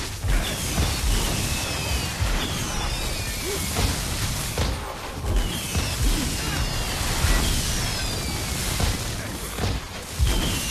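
Deep explosions boom and thud repeatedly.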